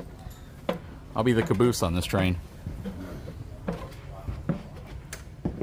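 Footsteps thud on hollow metal steps.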